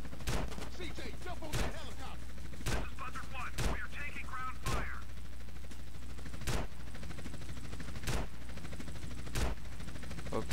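A helicopter's rotor whirs overhead.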